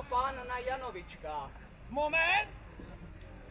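An older man sings out loudly nearby in short phrases.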